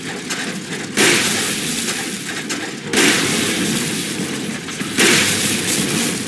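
A pump-action shotgun fires several blasts in a hard-walled corridor.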